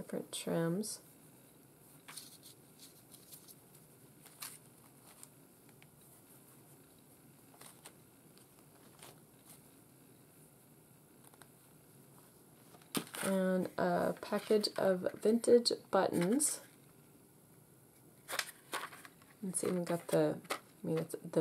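Paper and card rustle softly as they are handled.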